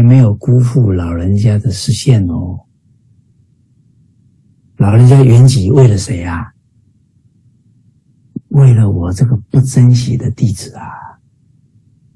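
A middle-aged man speaks earnestly into a microphone over an online call, in short bursts with pauses.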